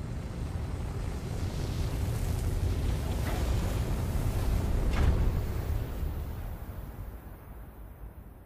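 Rocket thrusters roar with a deep, steady rumble that fades away.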